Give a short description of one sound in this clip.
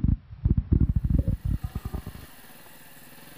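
A dirt bike engine revs hard in loud bursts.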